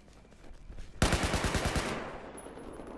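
Rapid gunshots fire in a quick burst.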